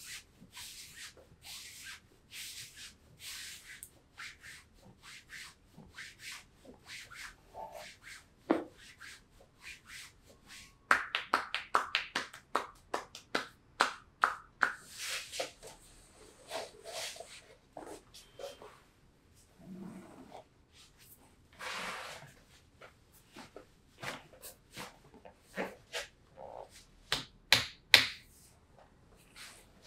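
Hands rub and pat briskly against cloth.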